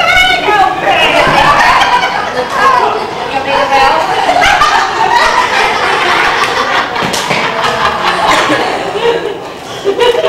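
A second young woman laughs along.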